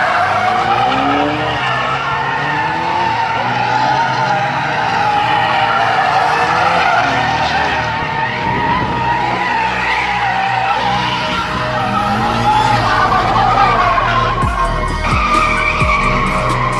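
A car engine revs hard.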